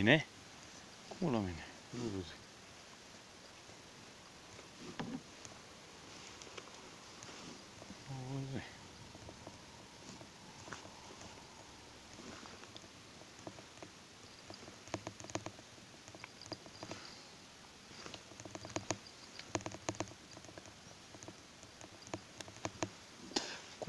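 Stiff clothing rustles close by.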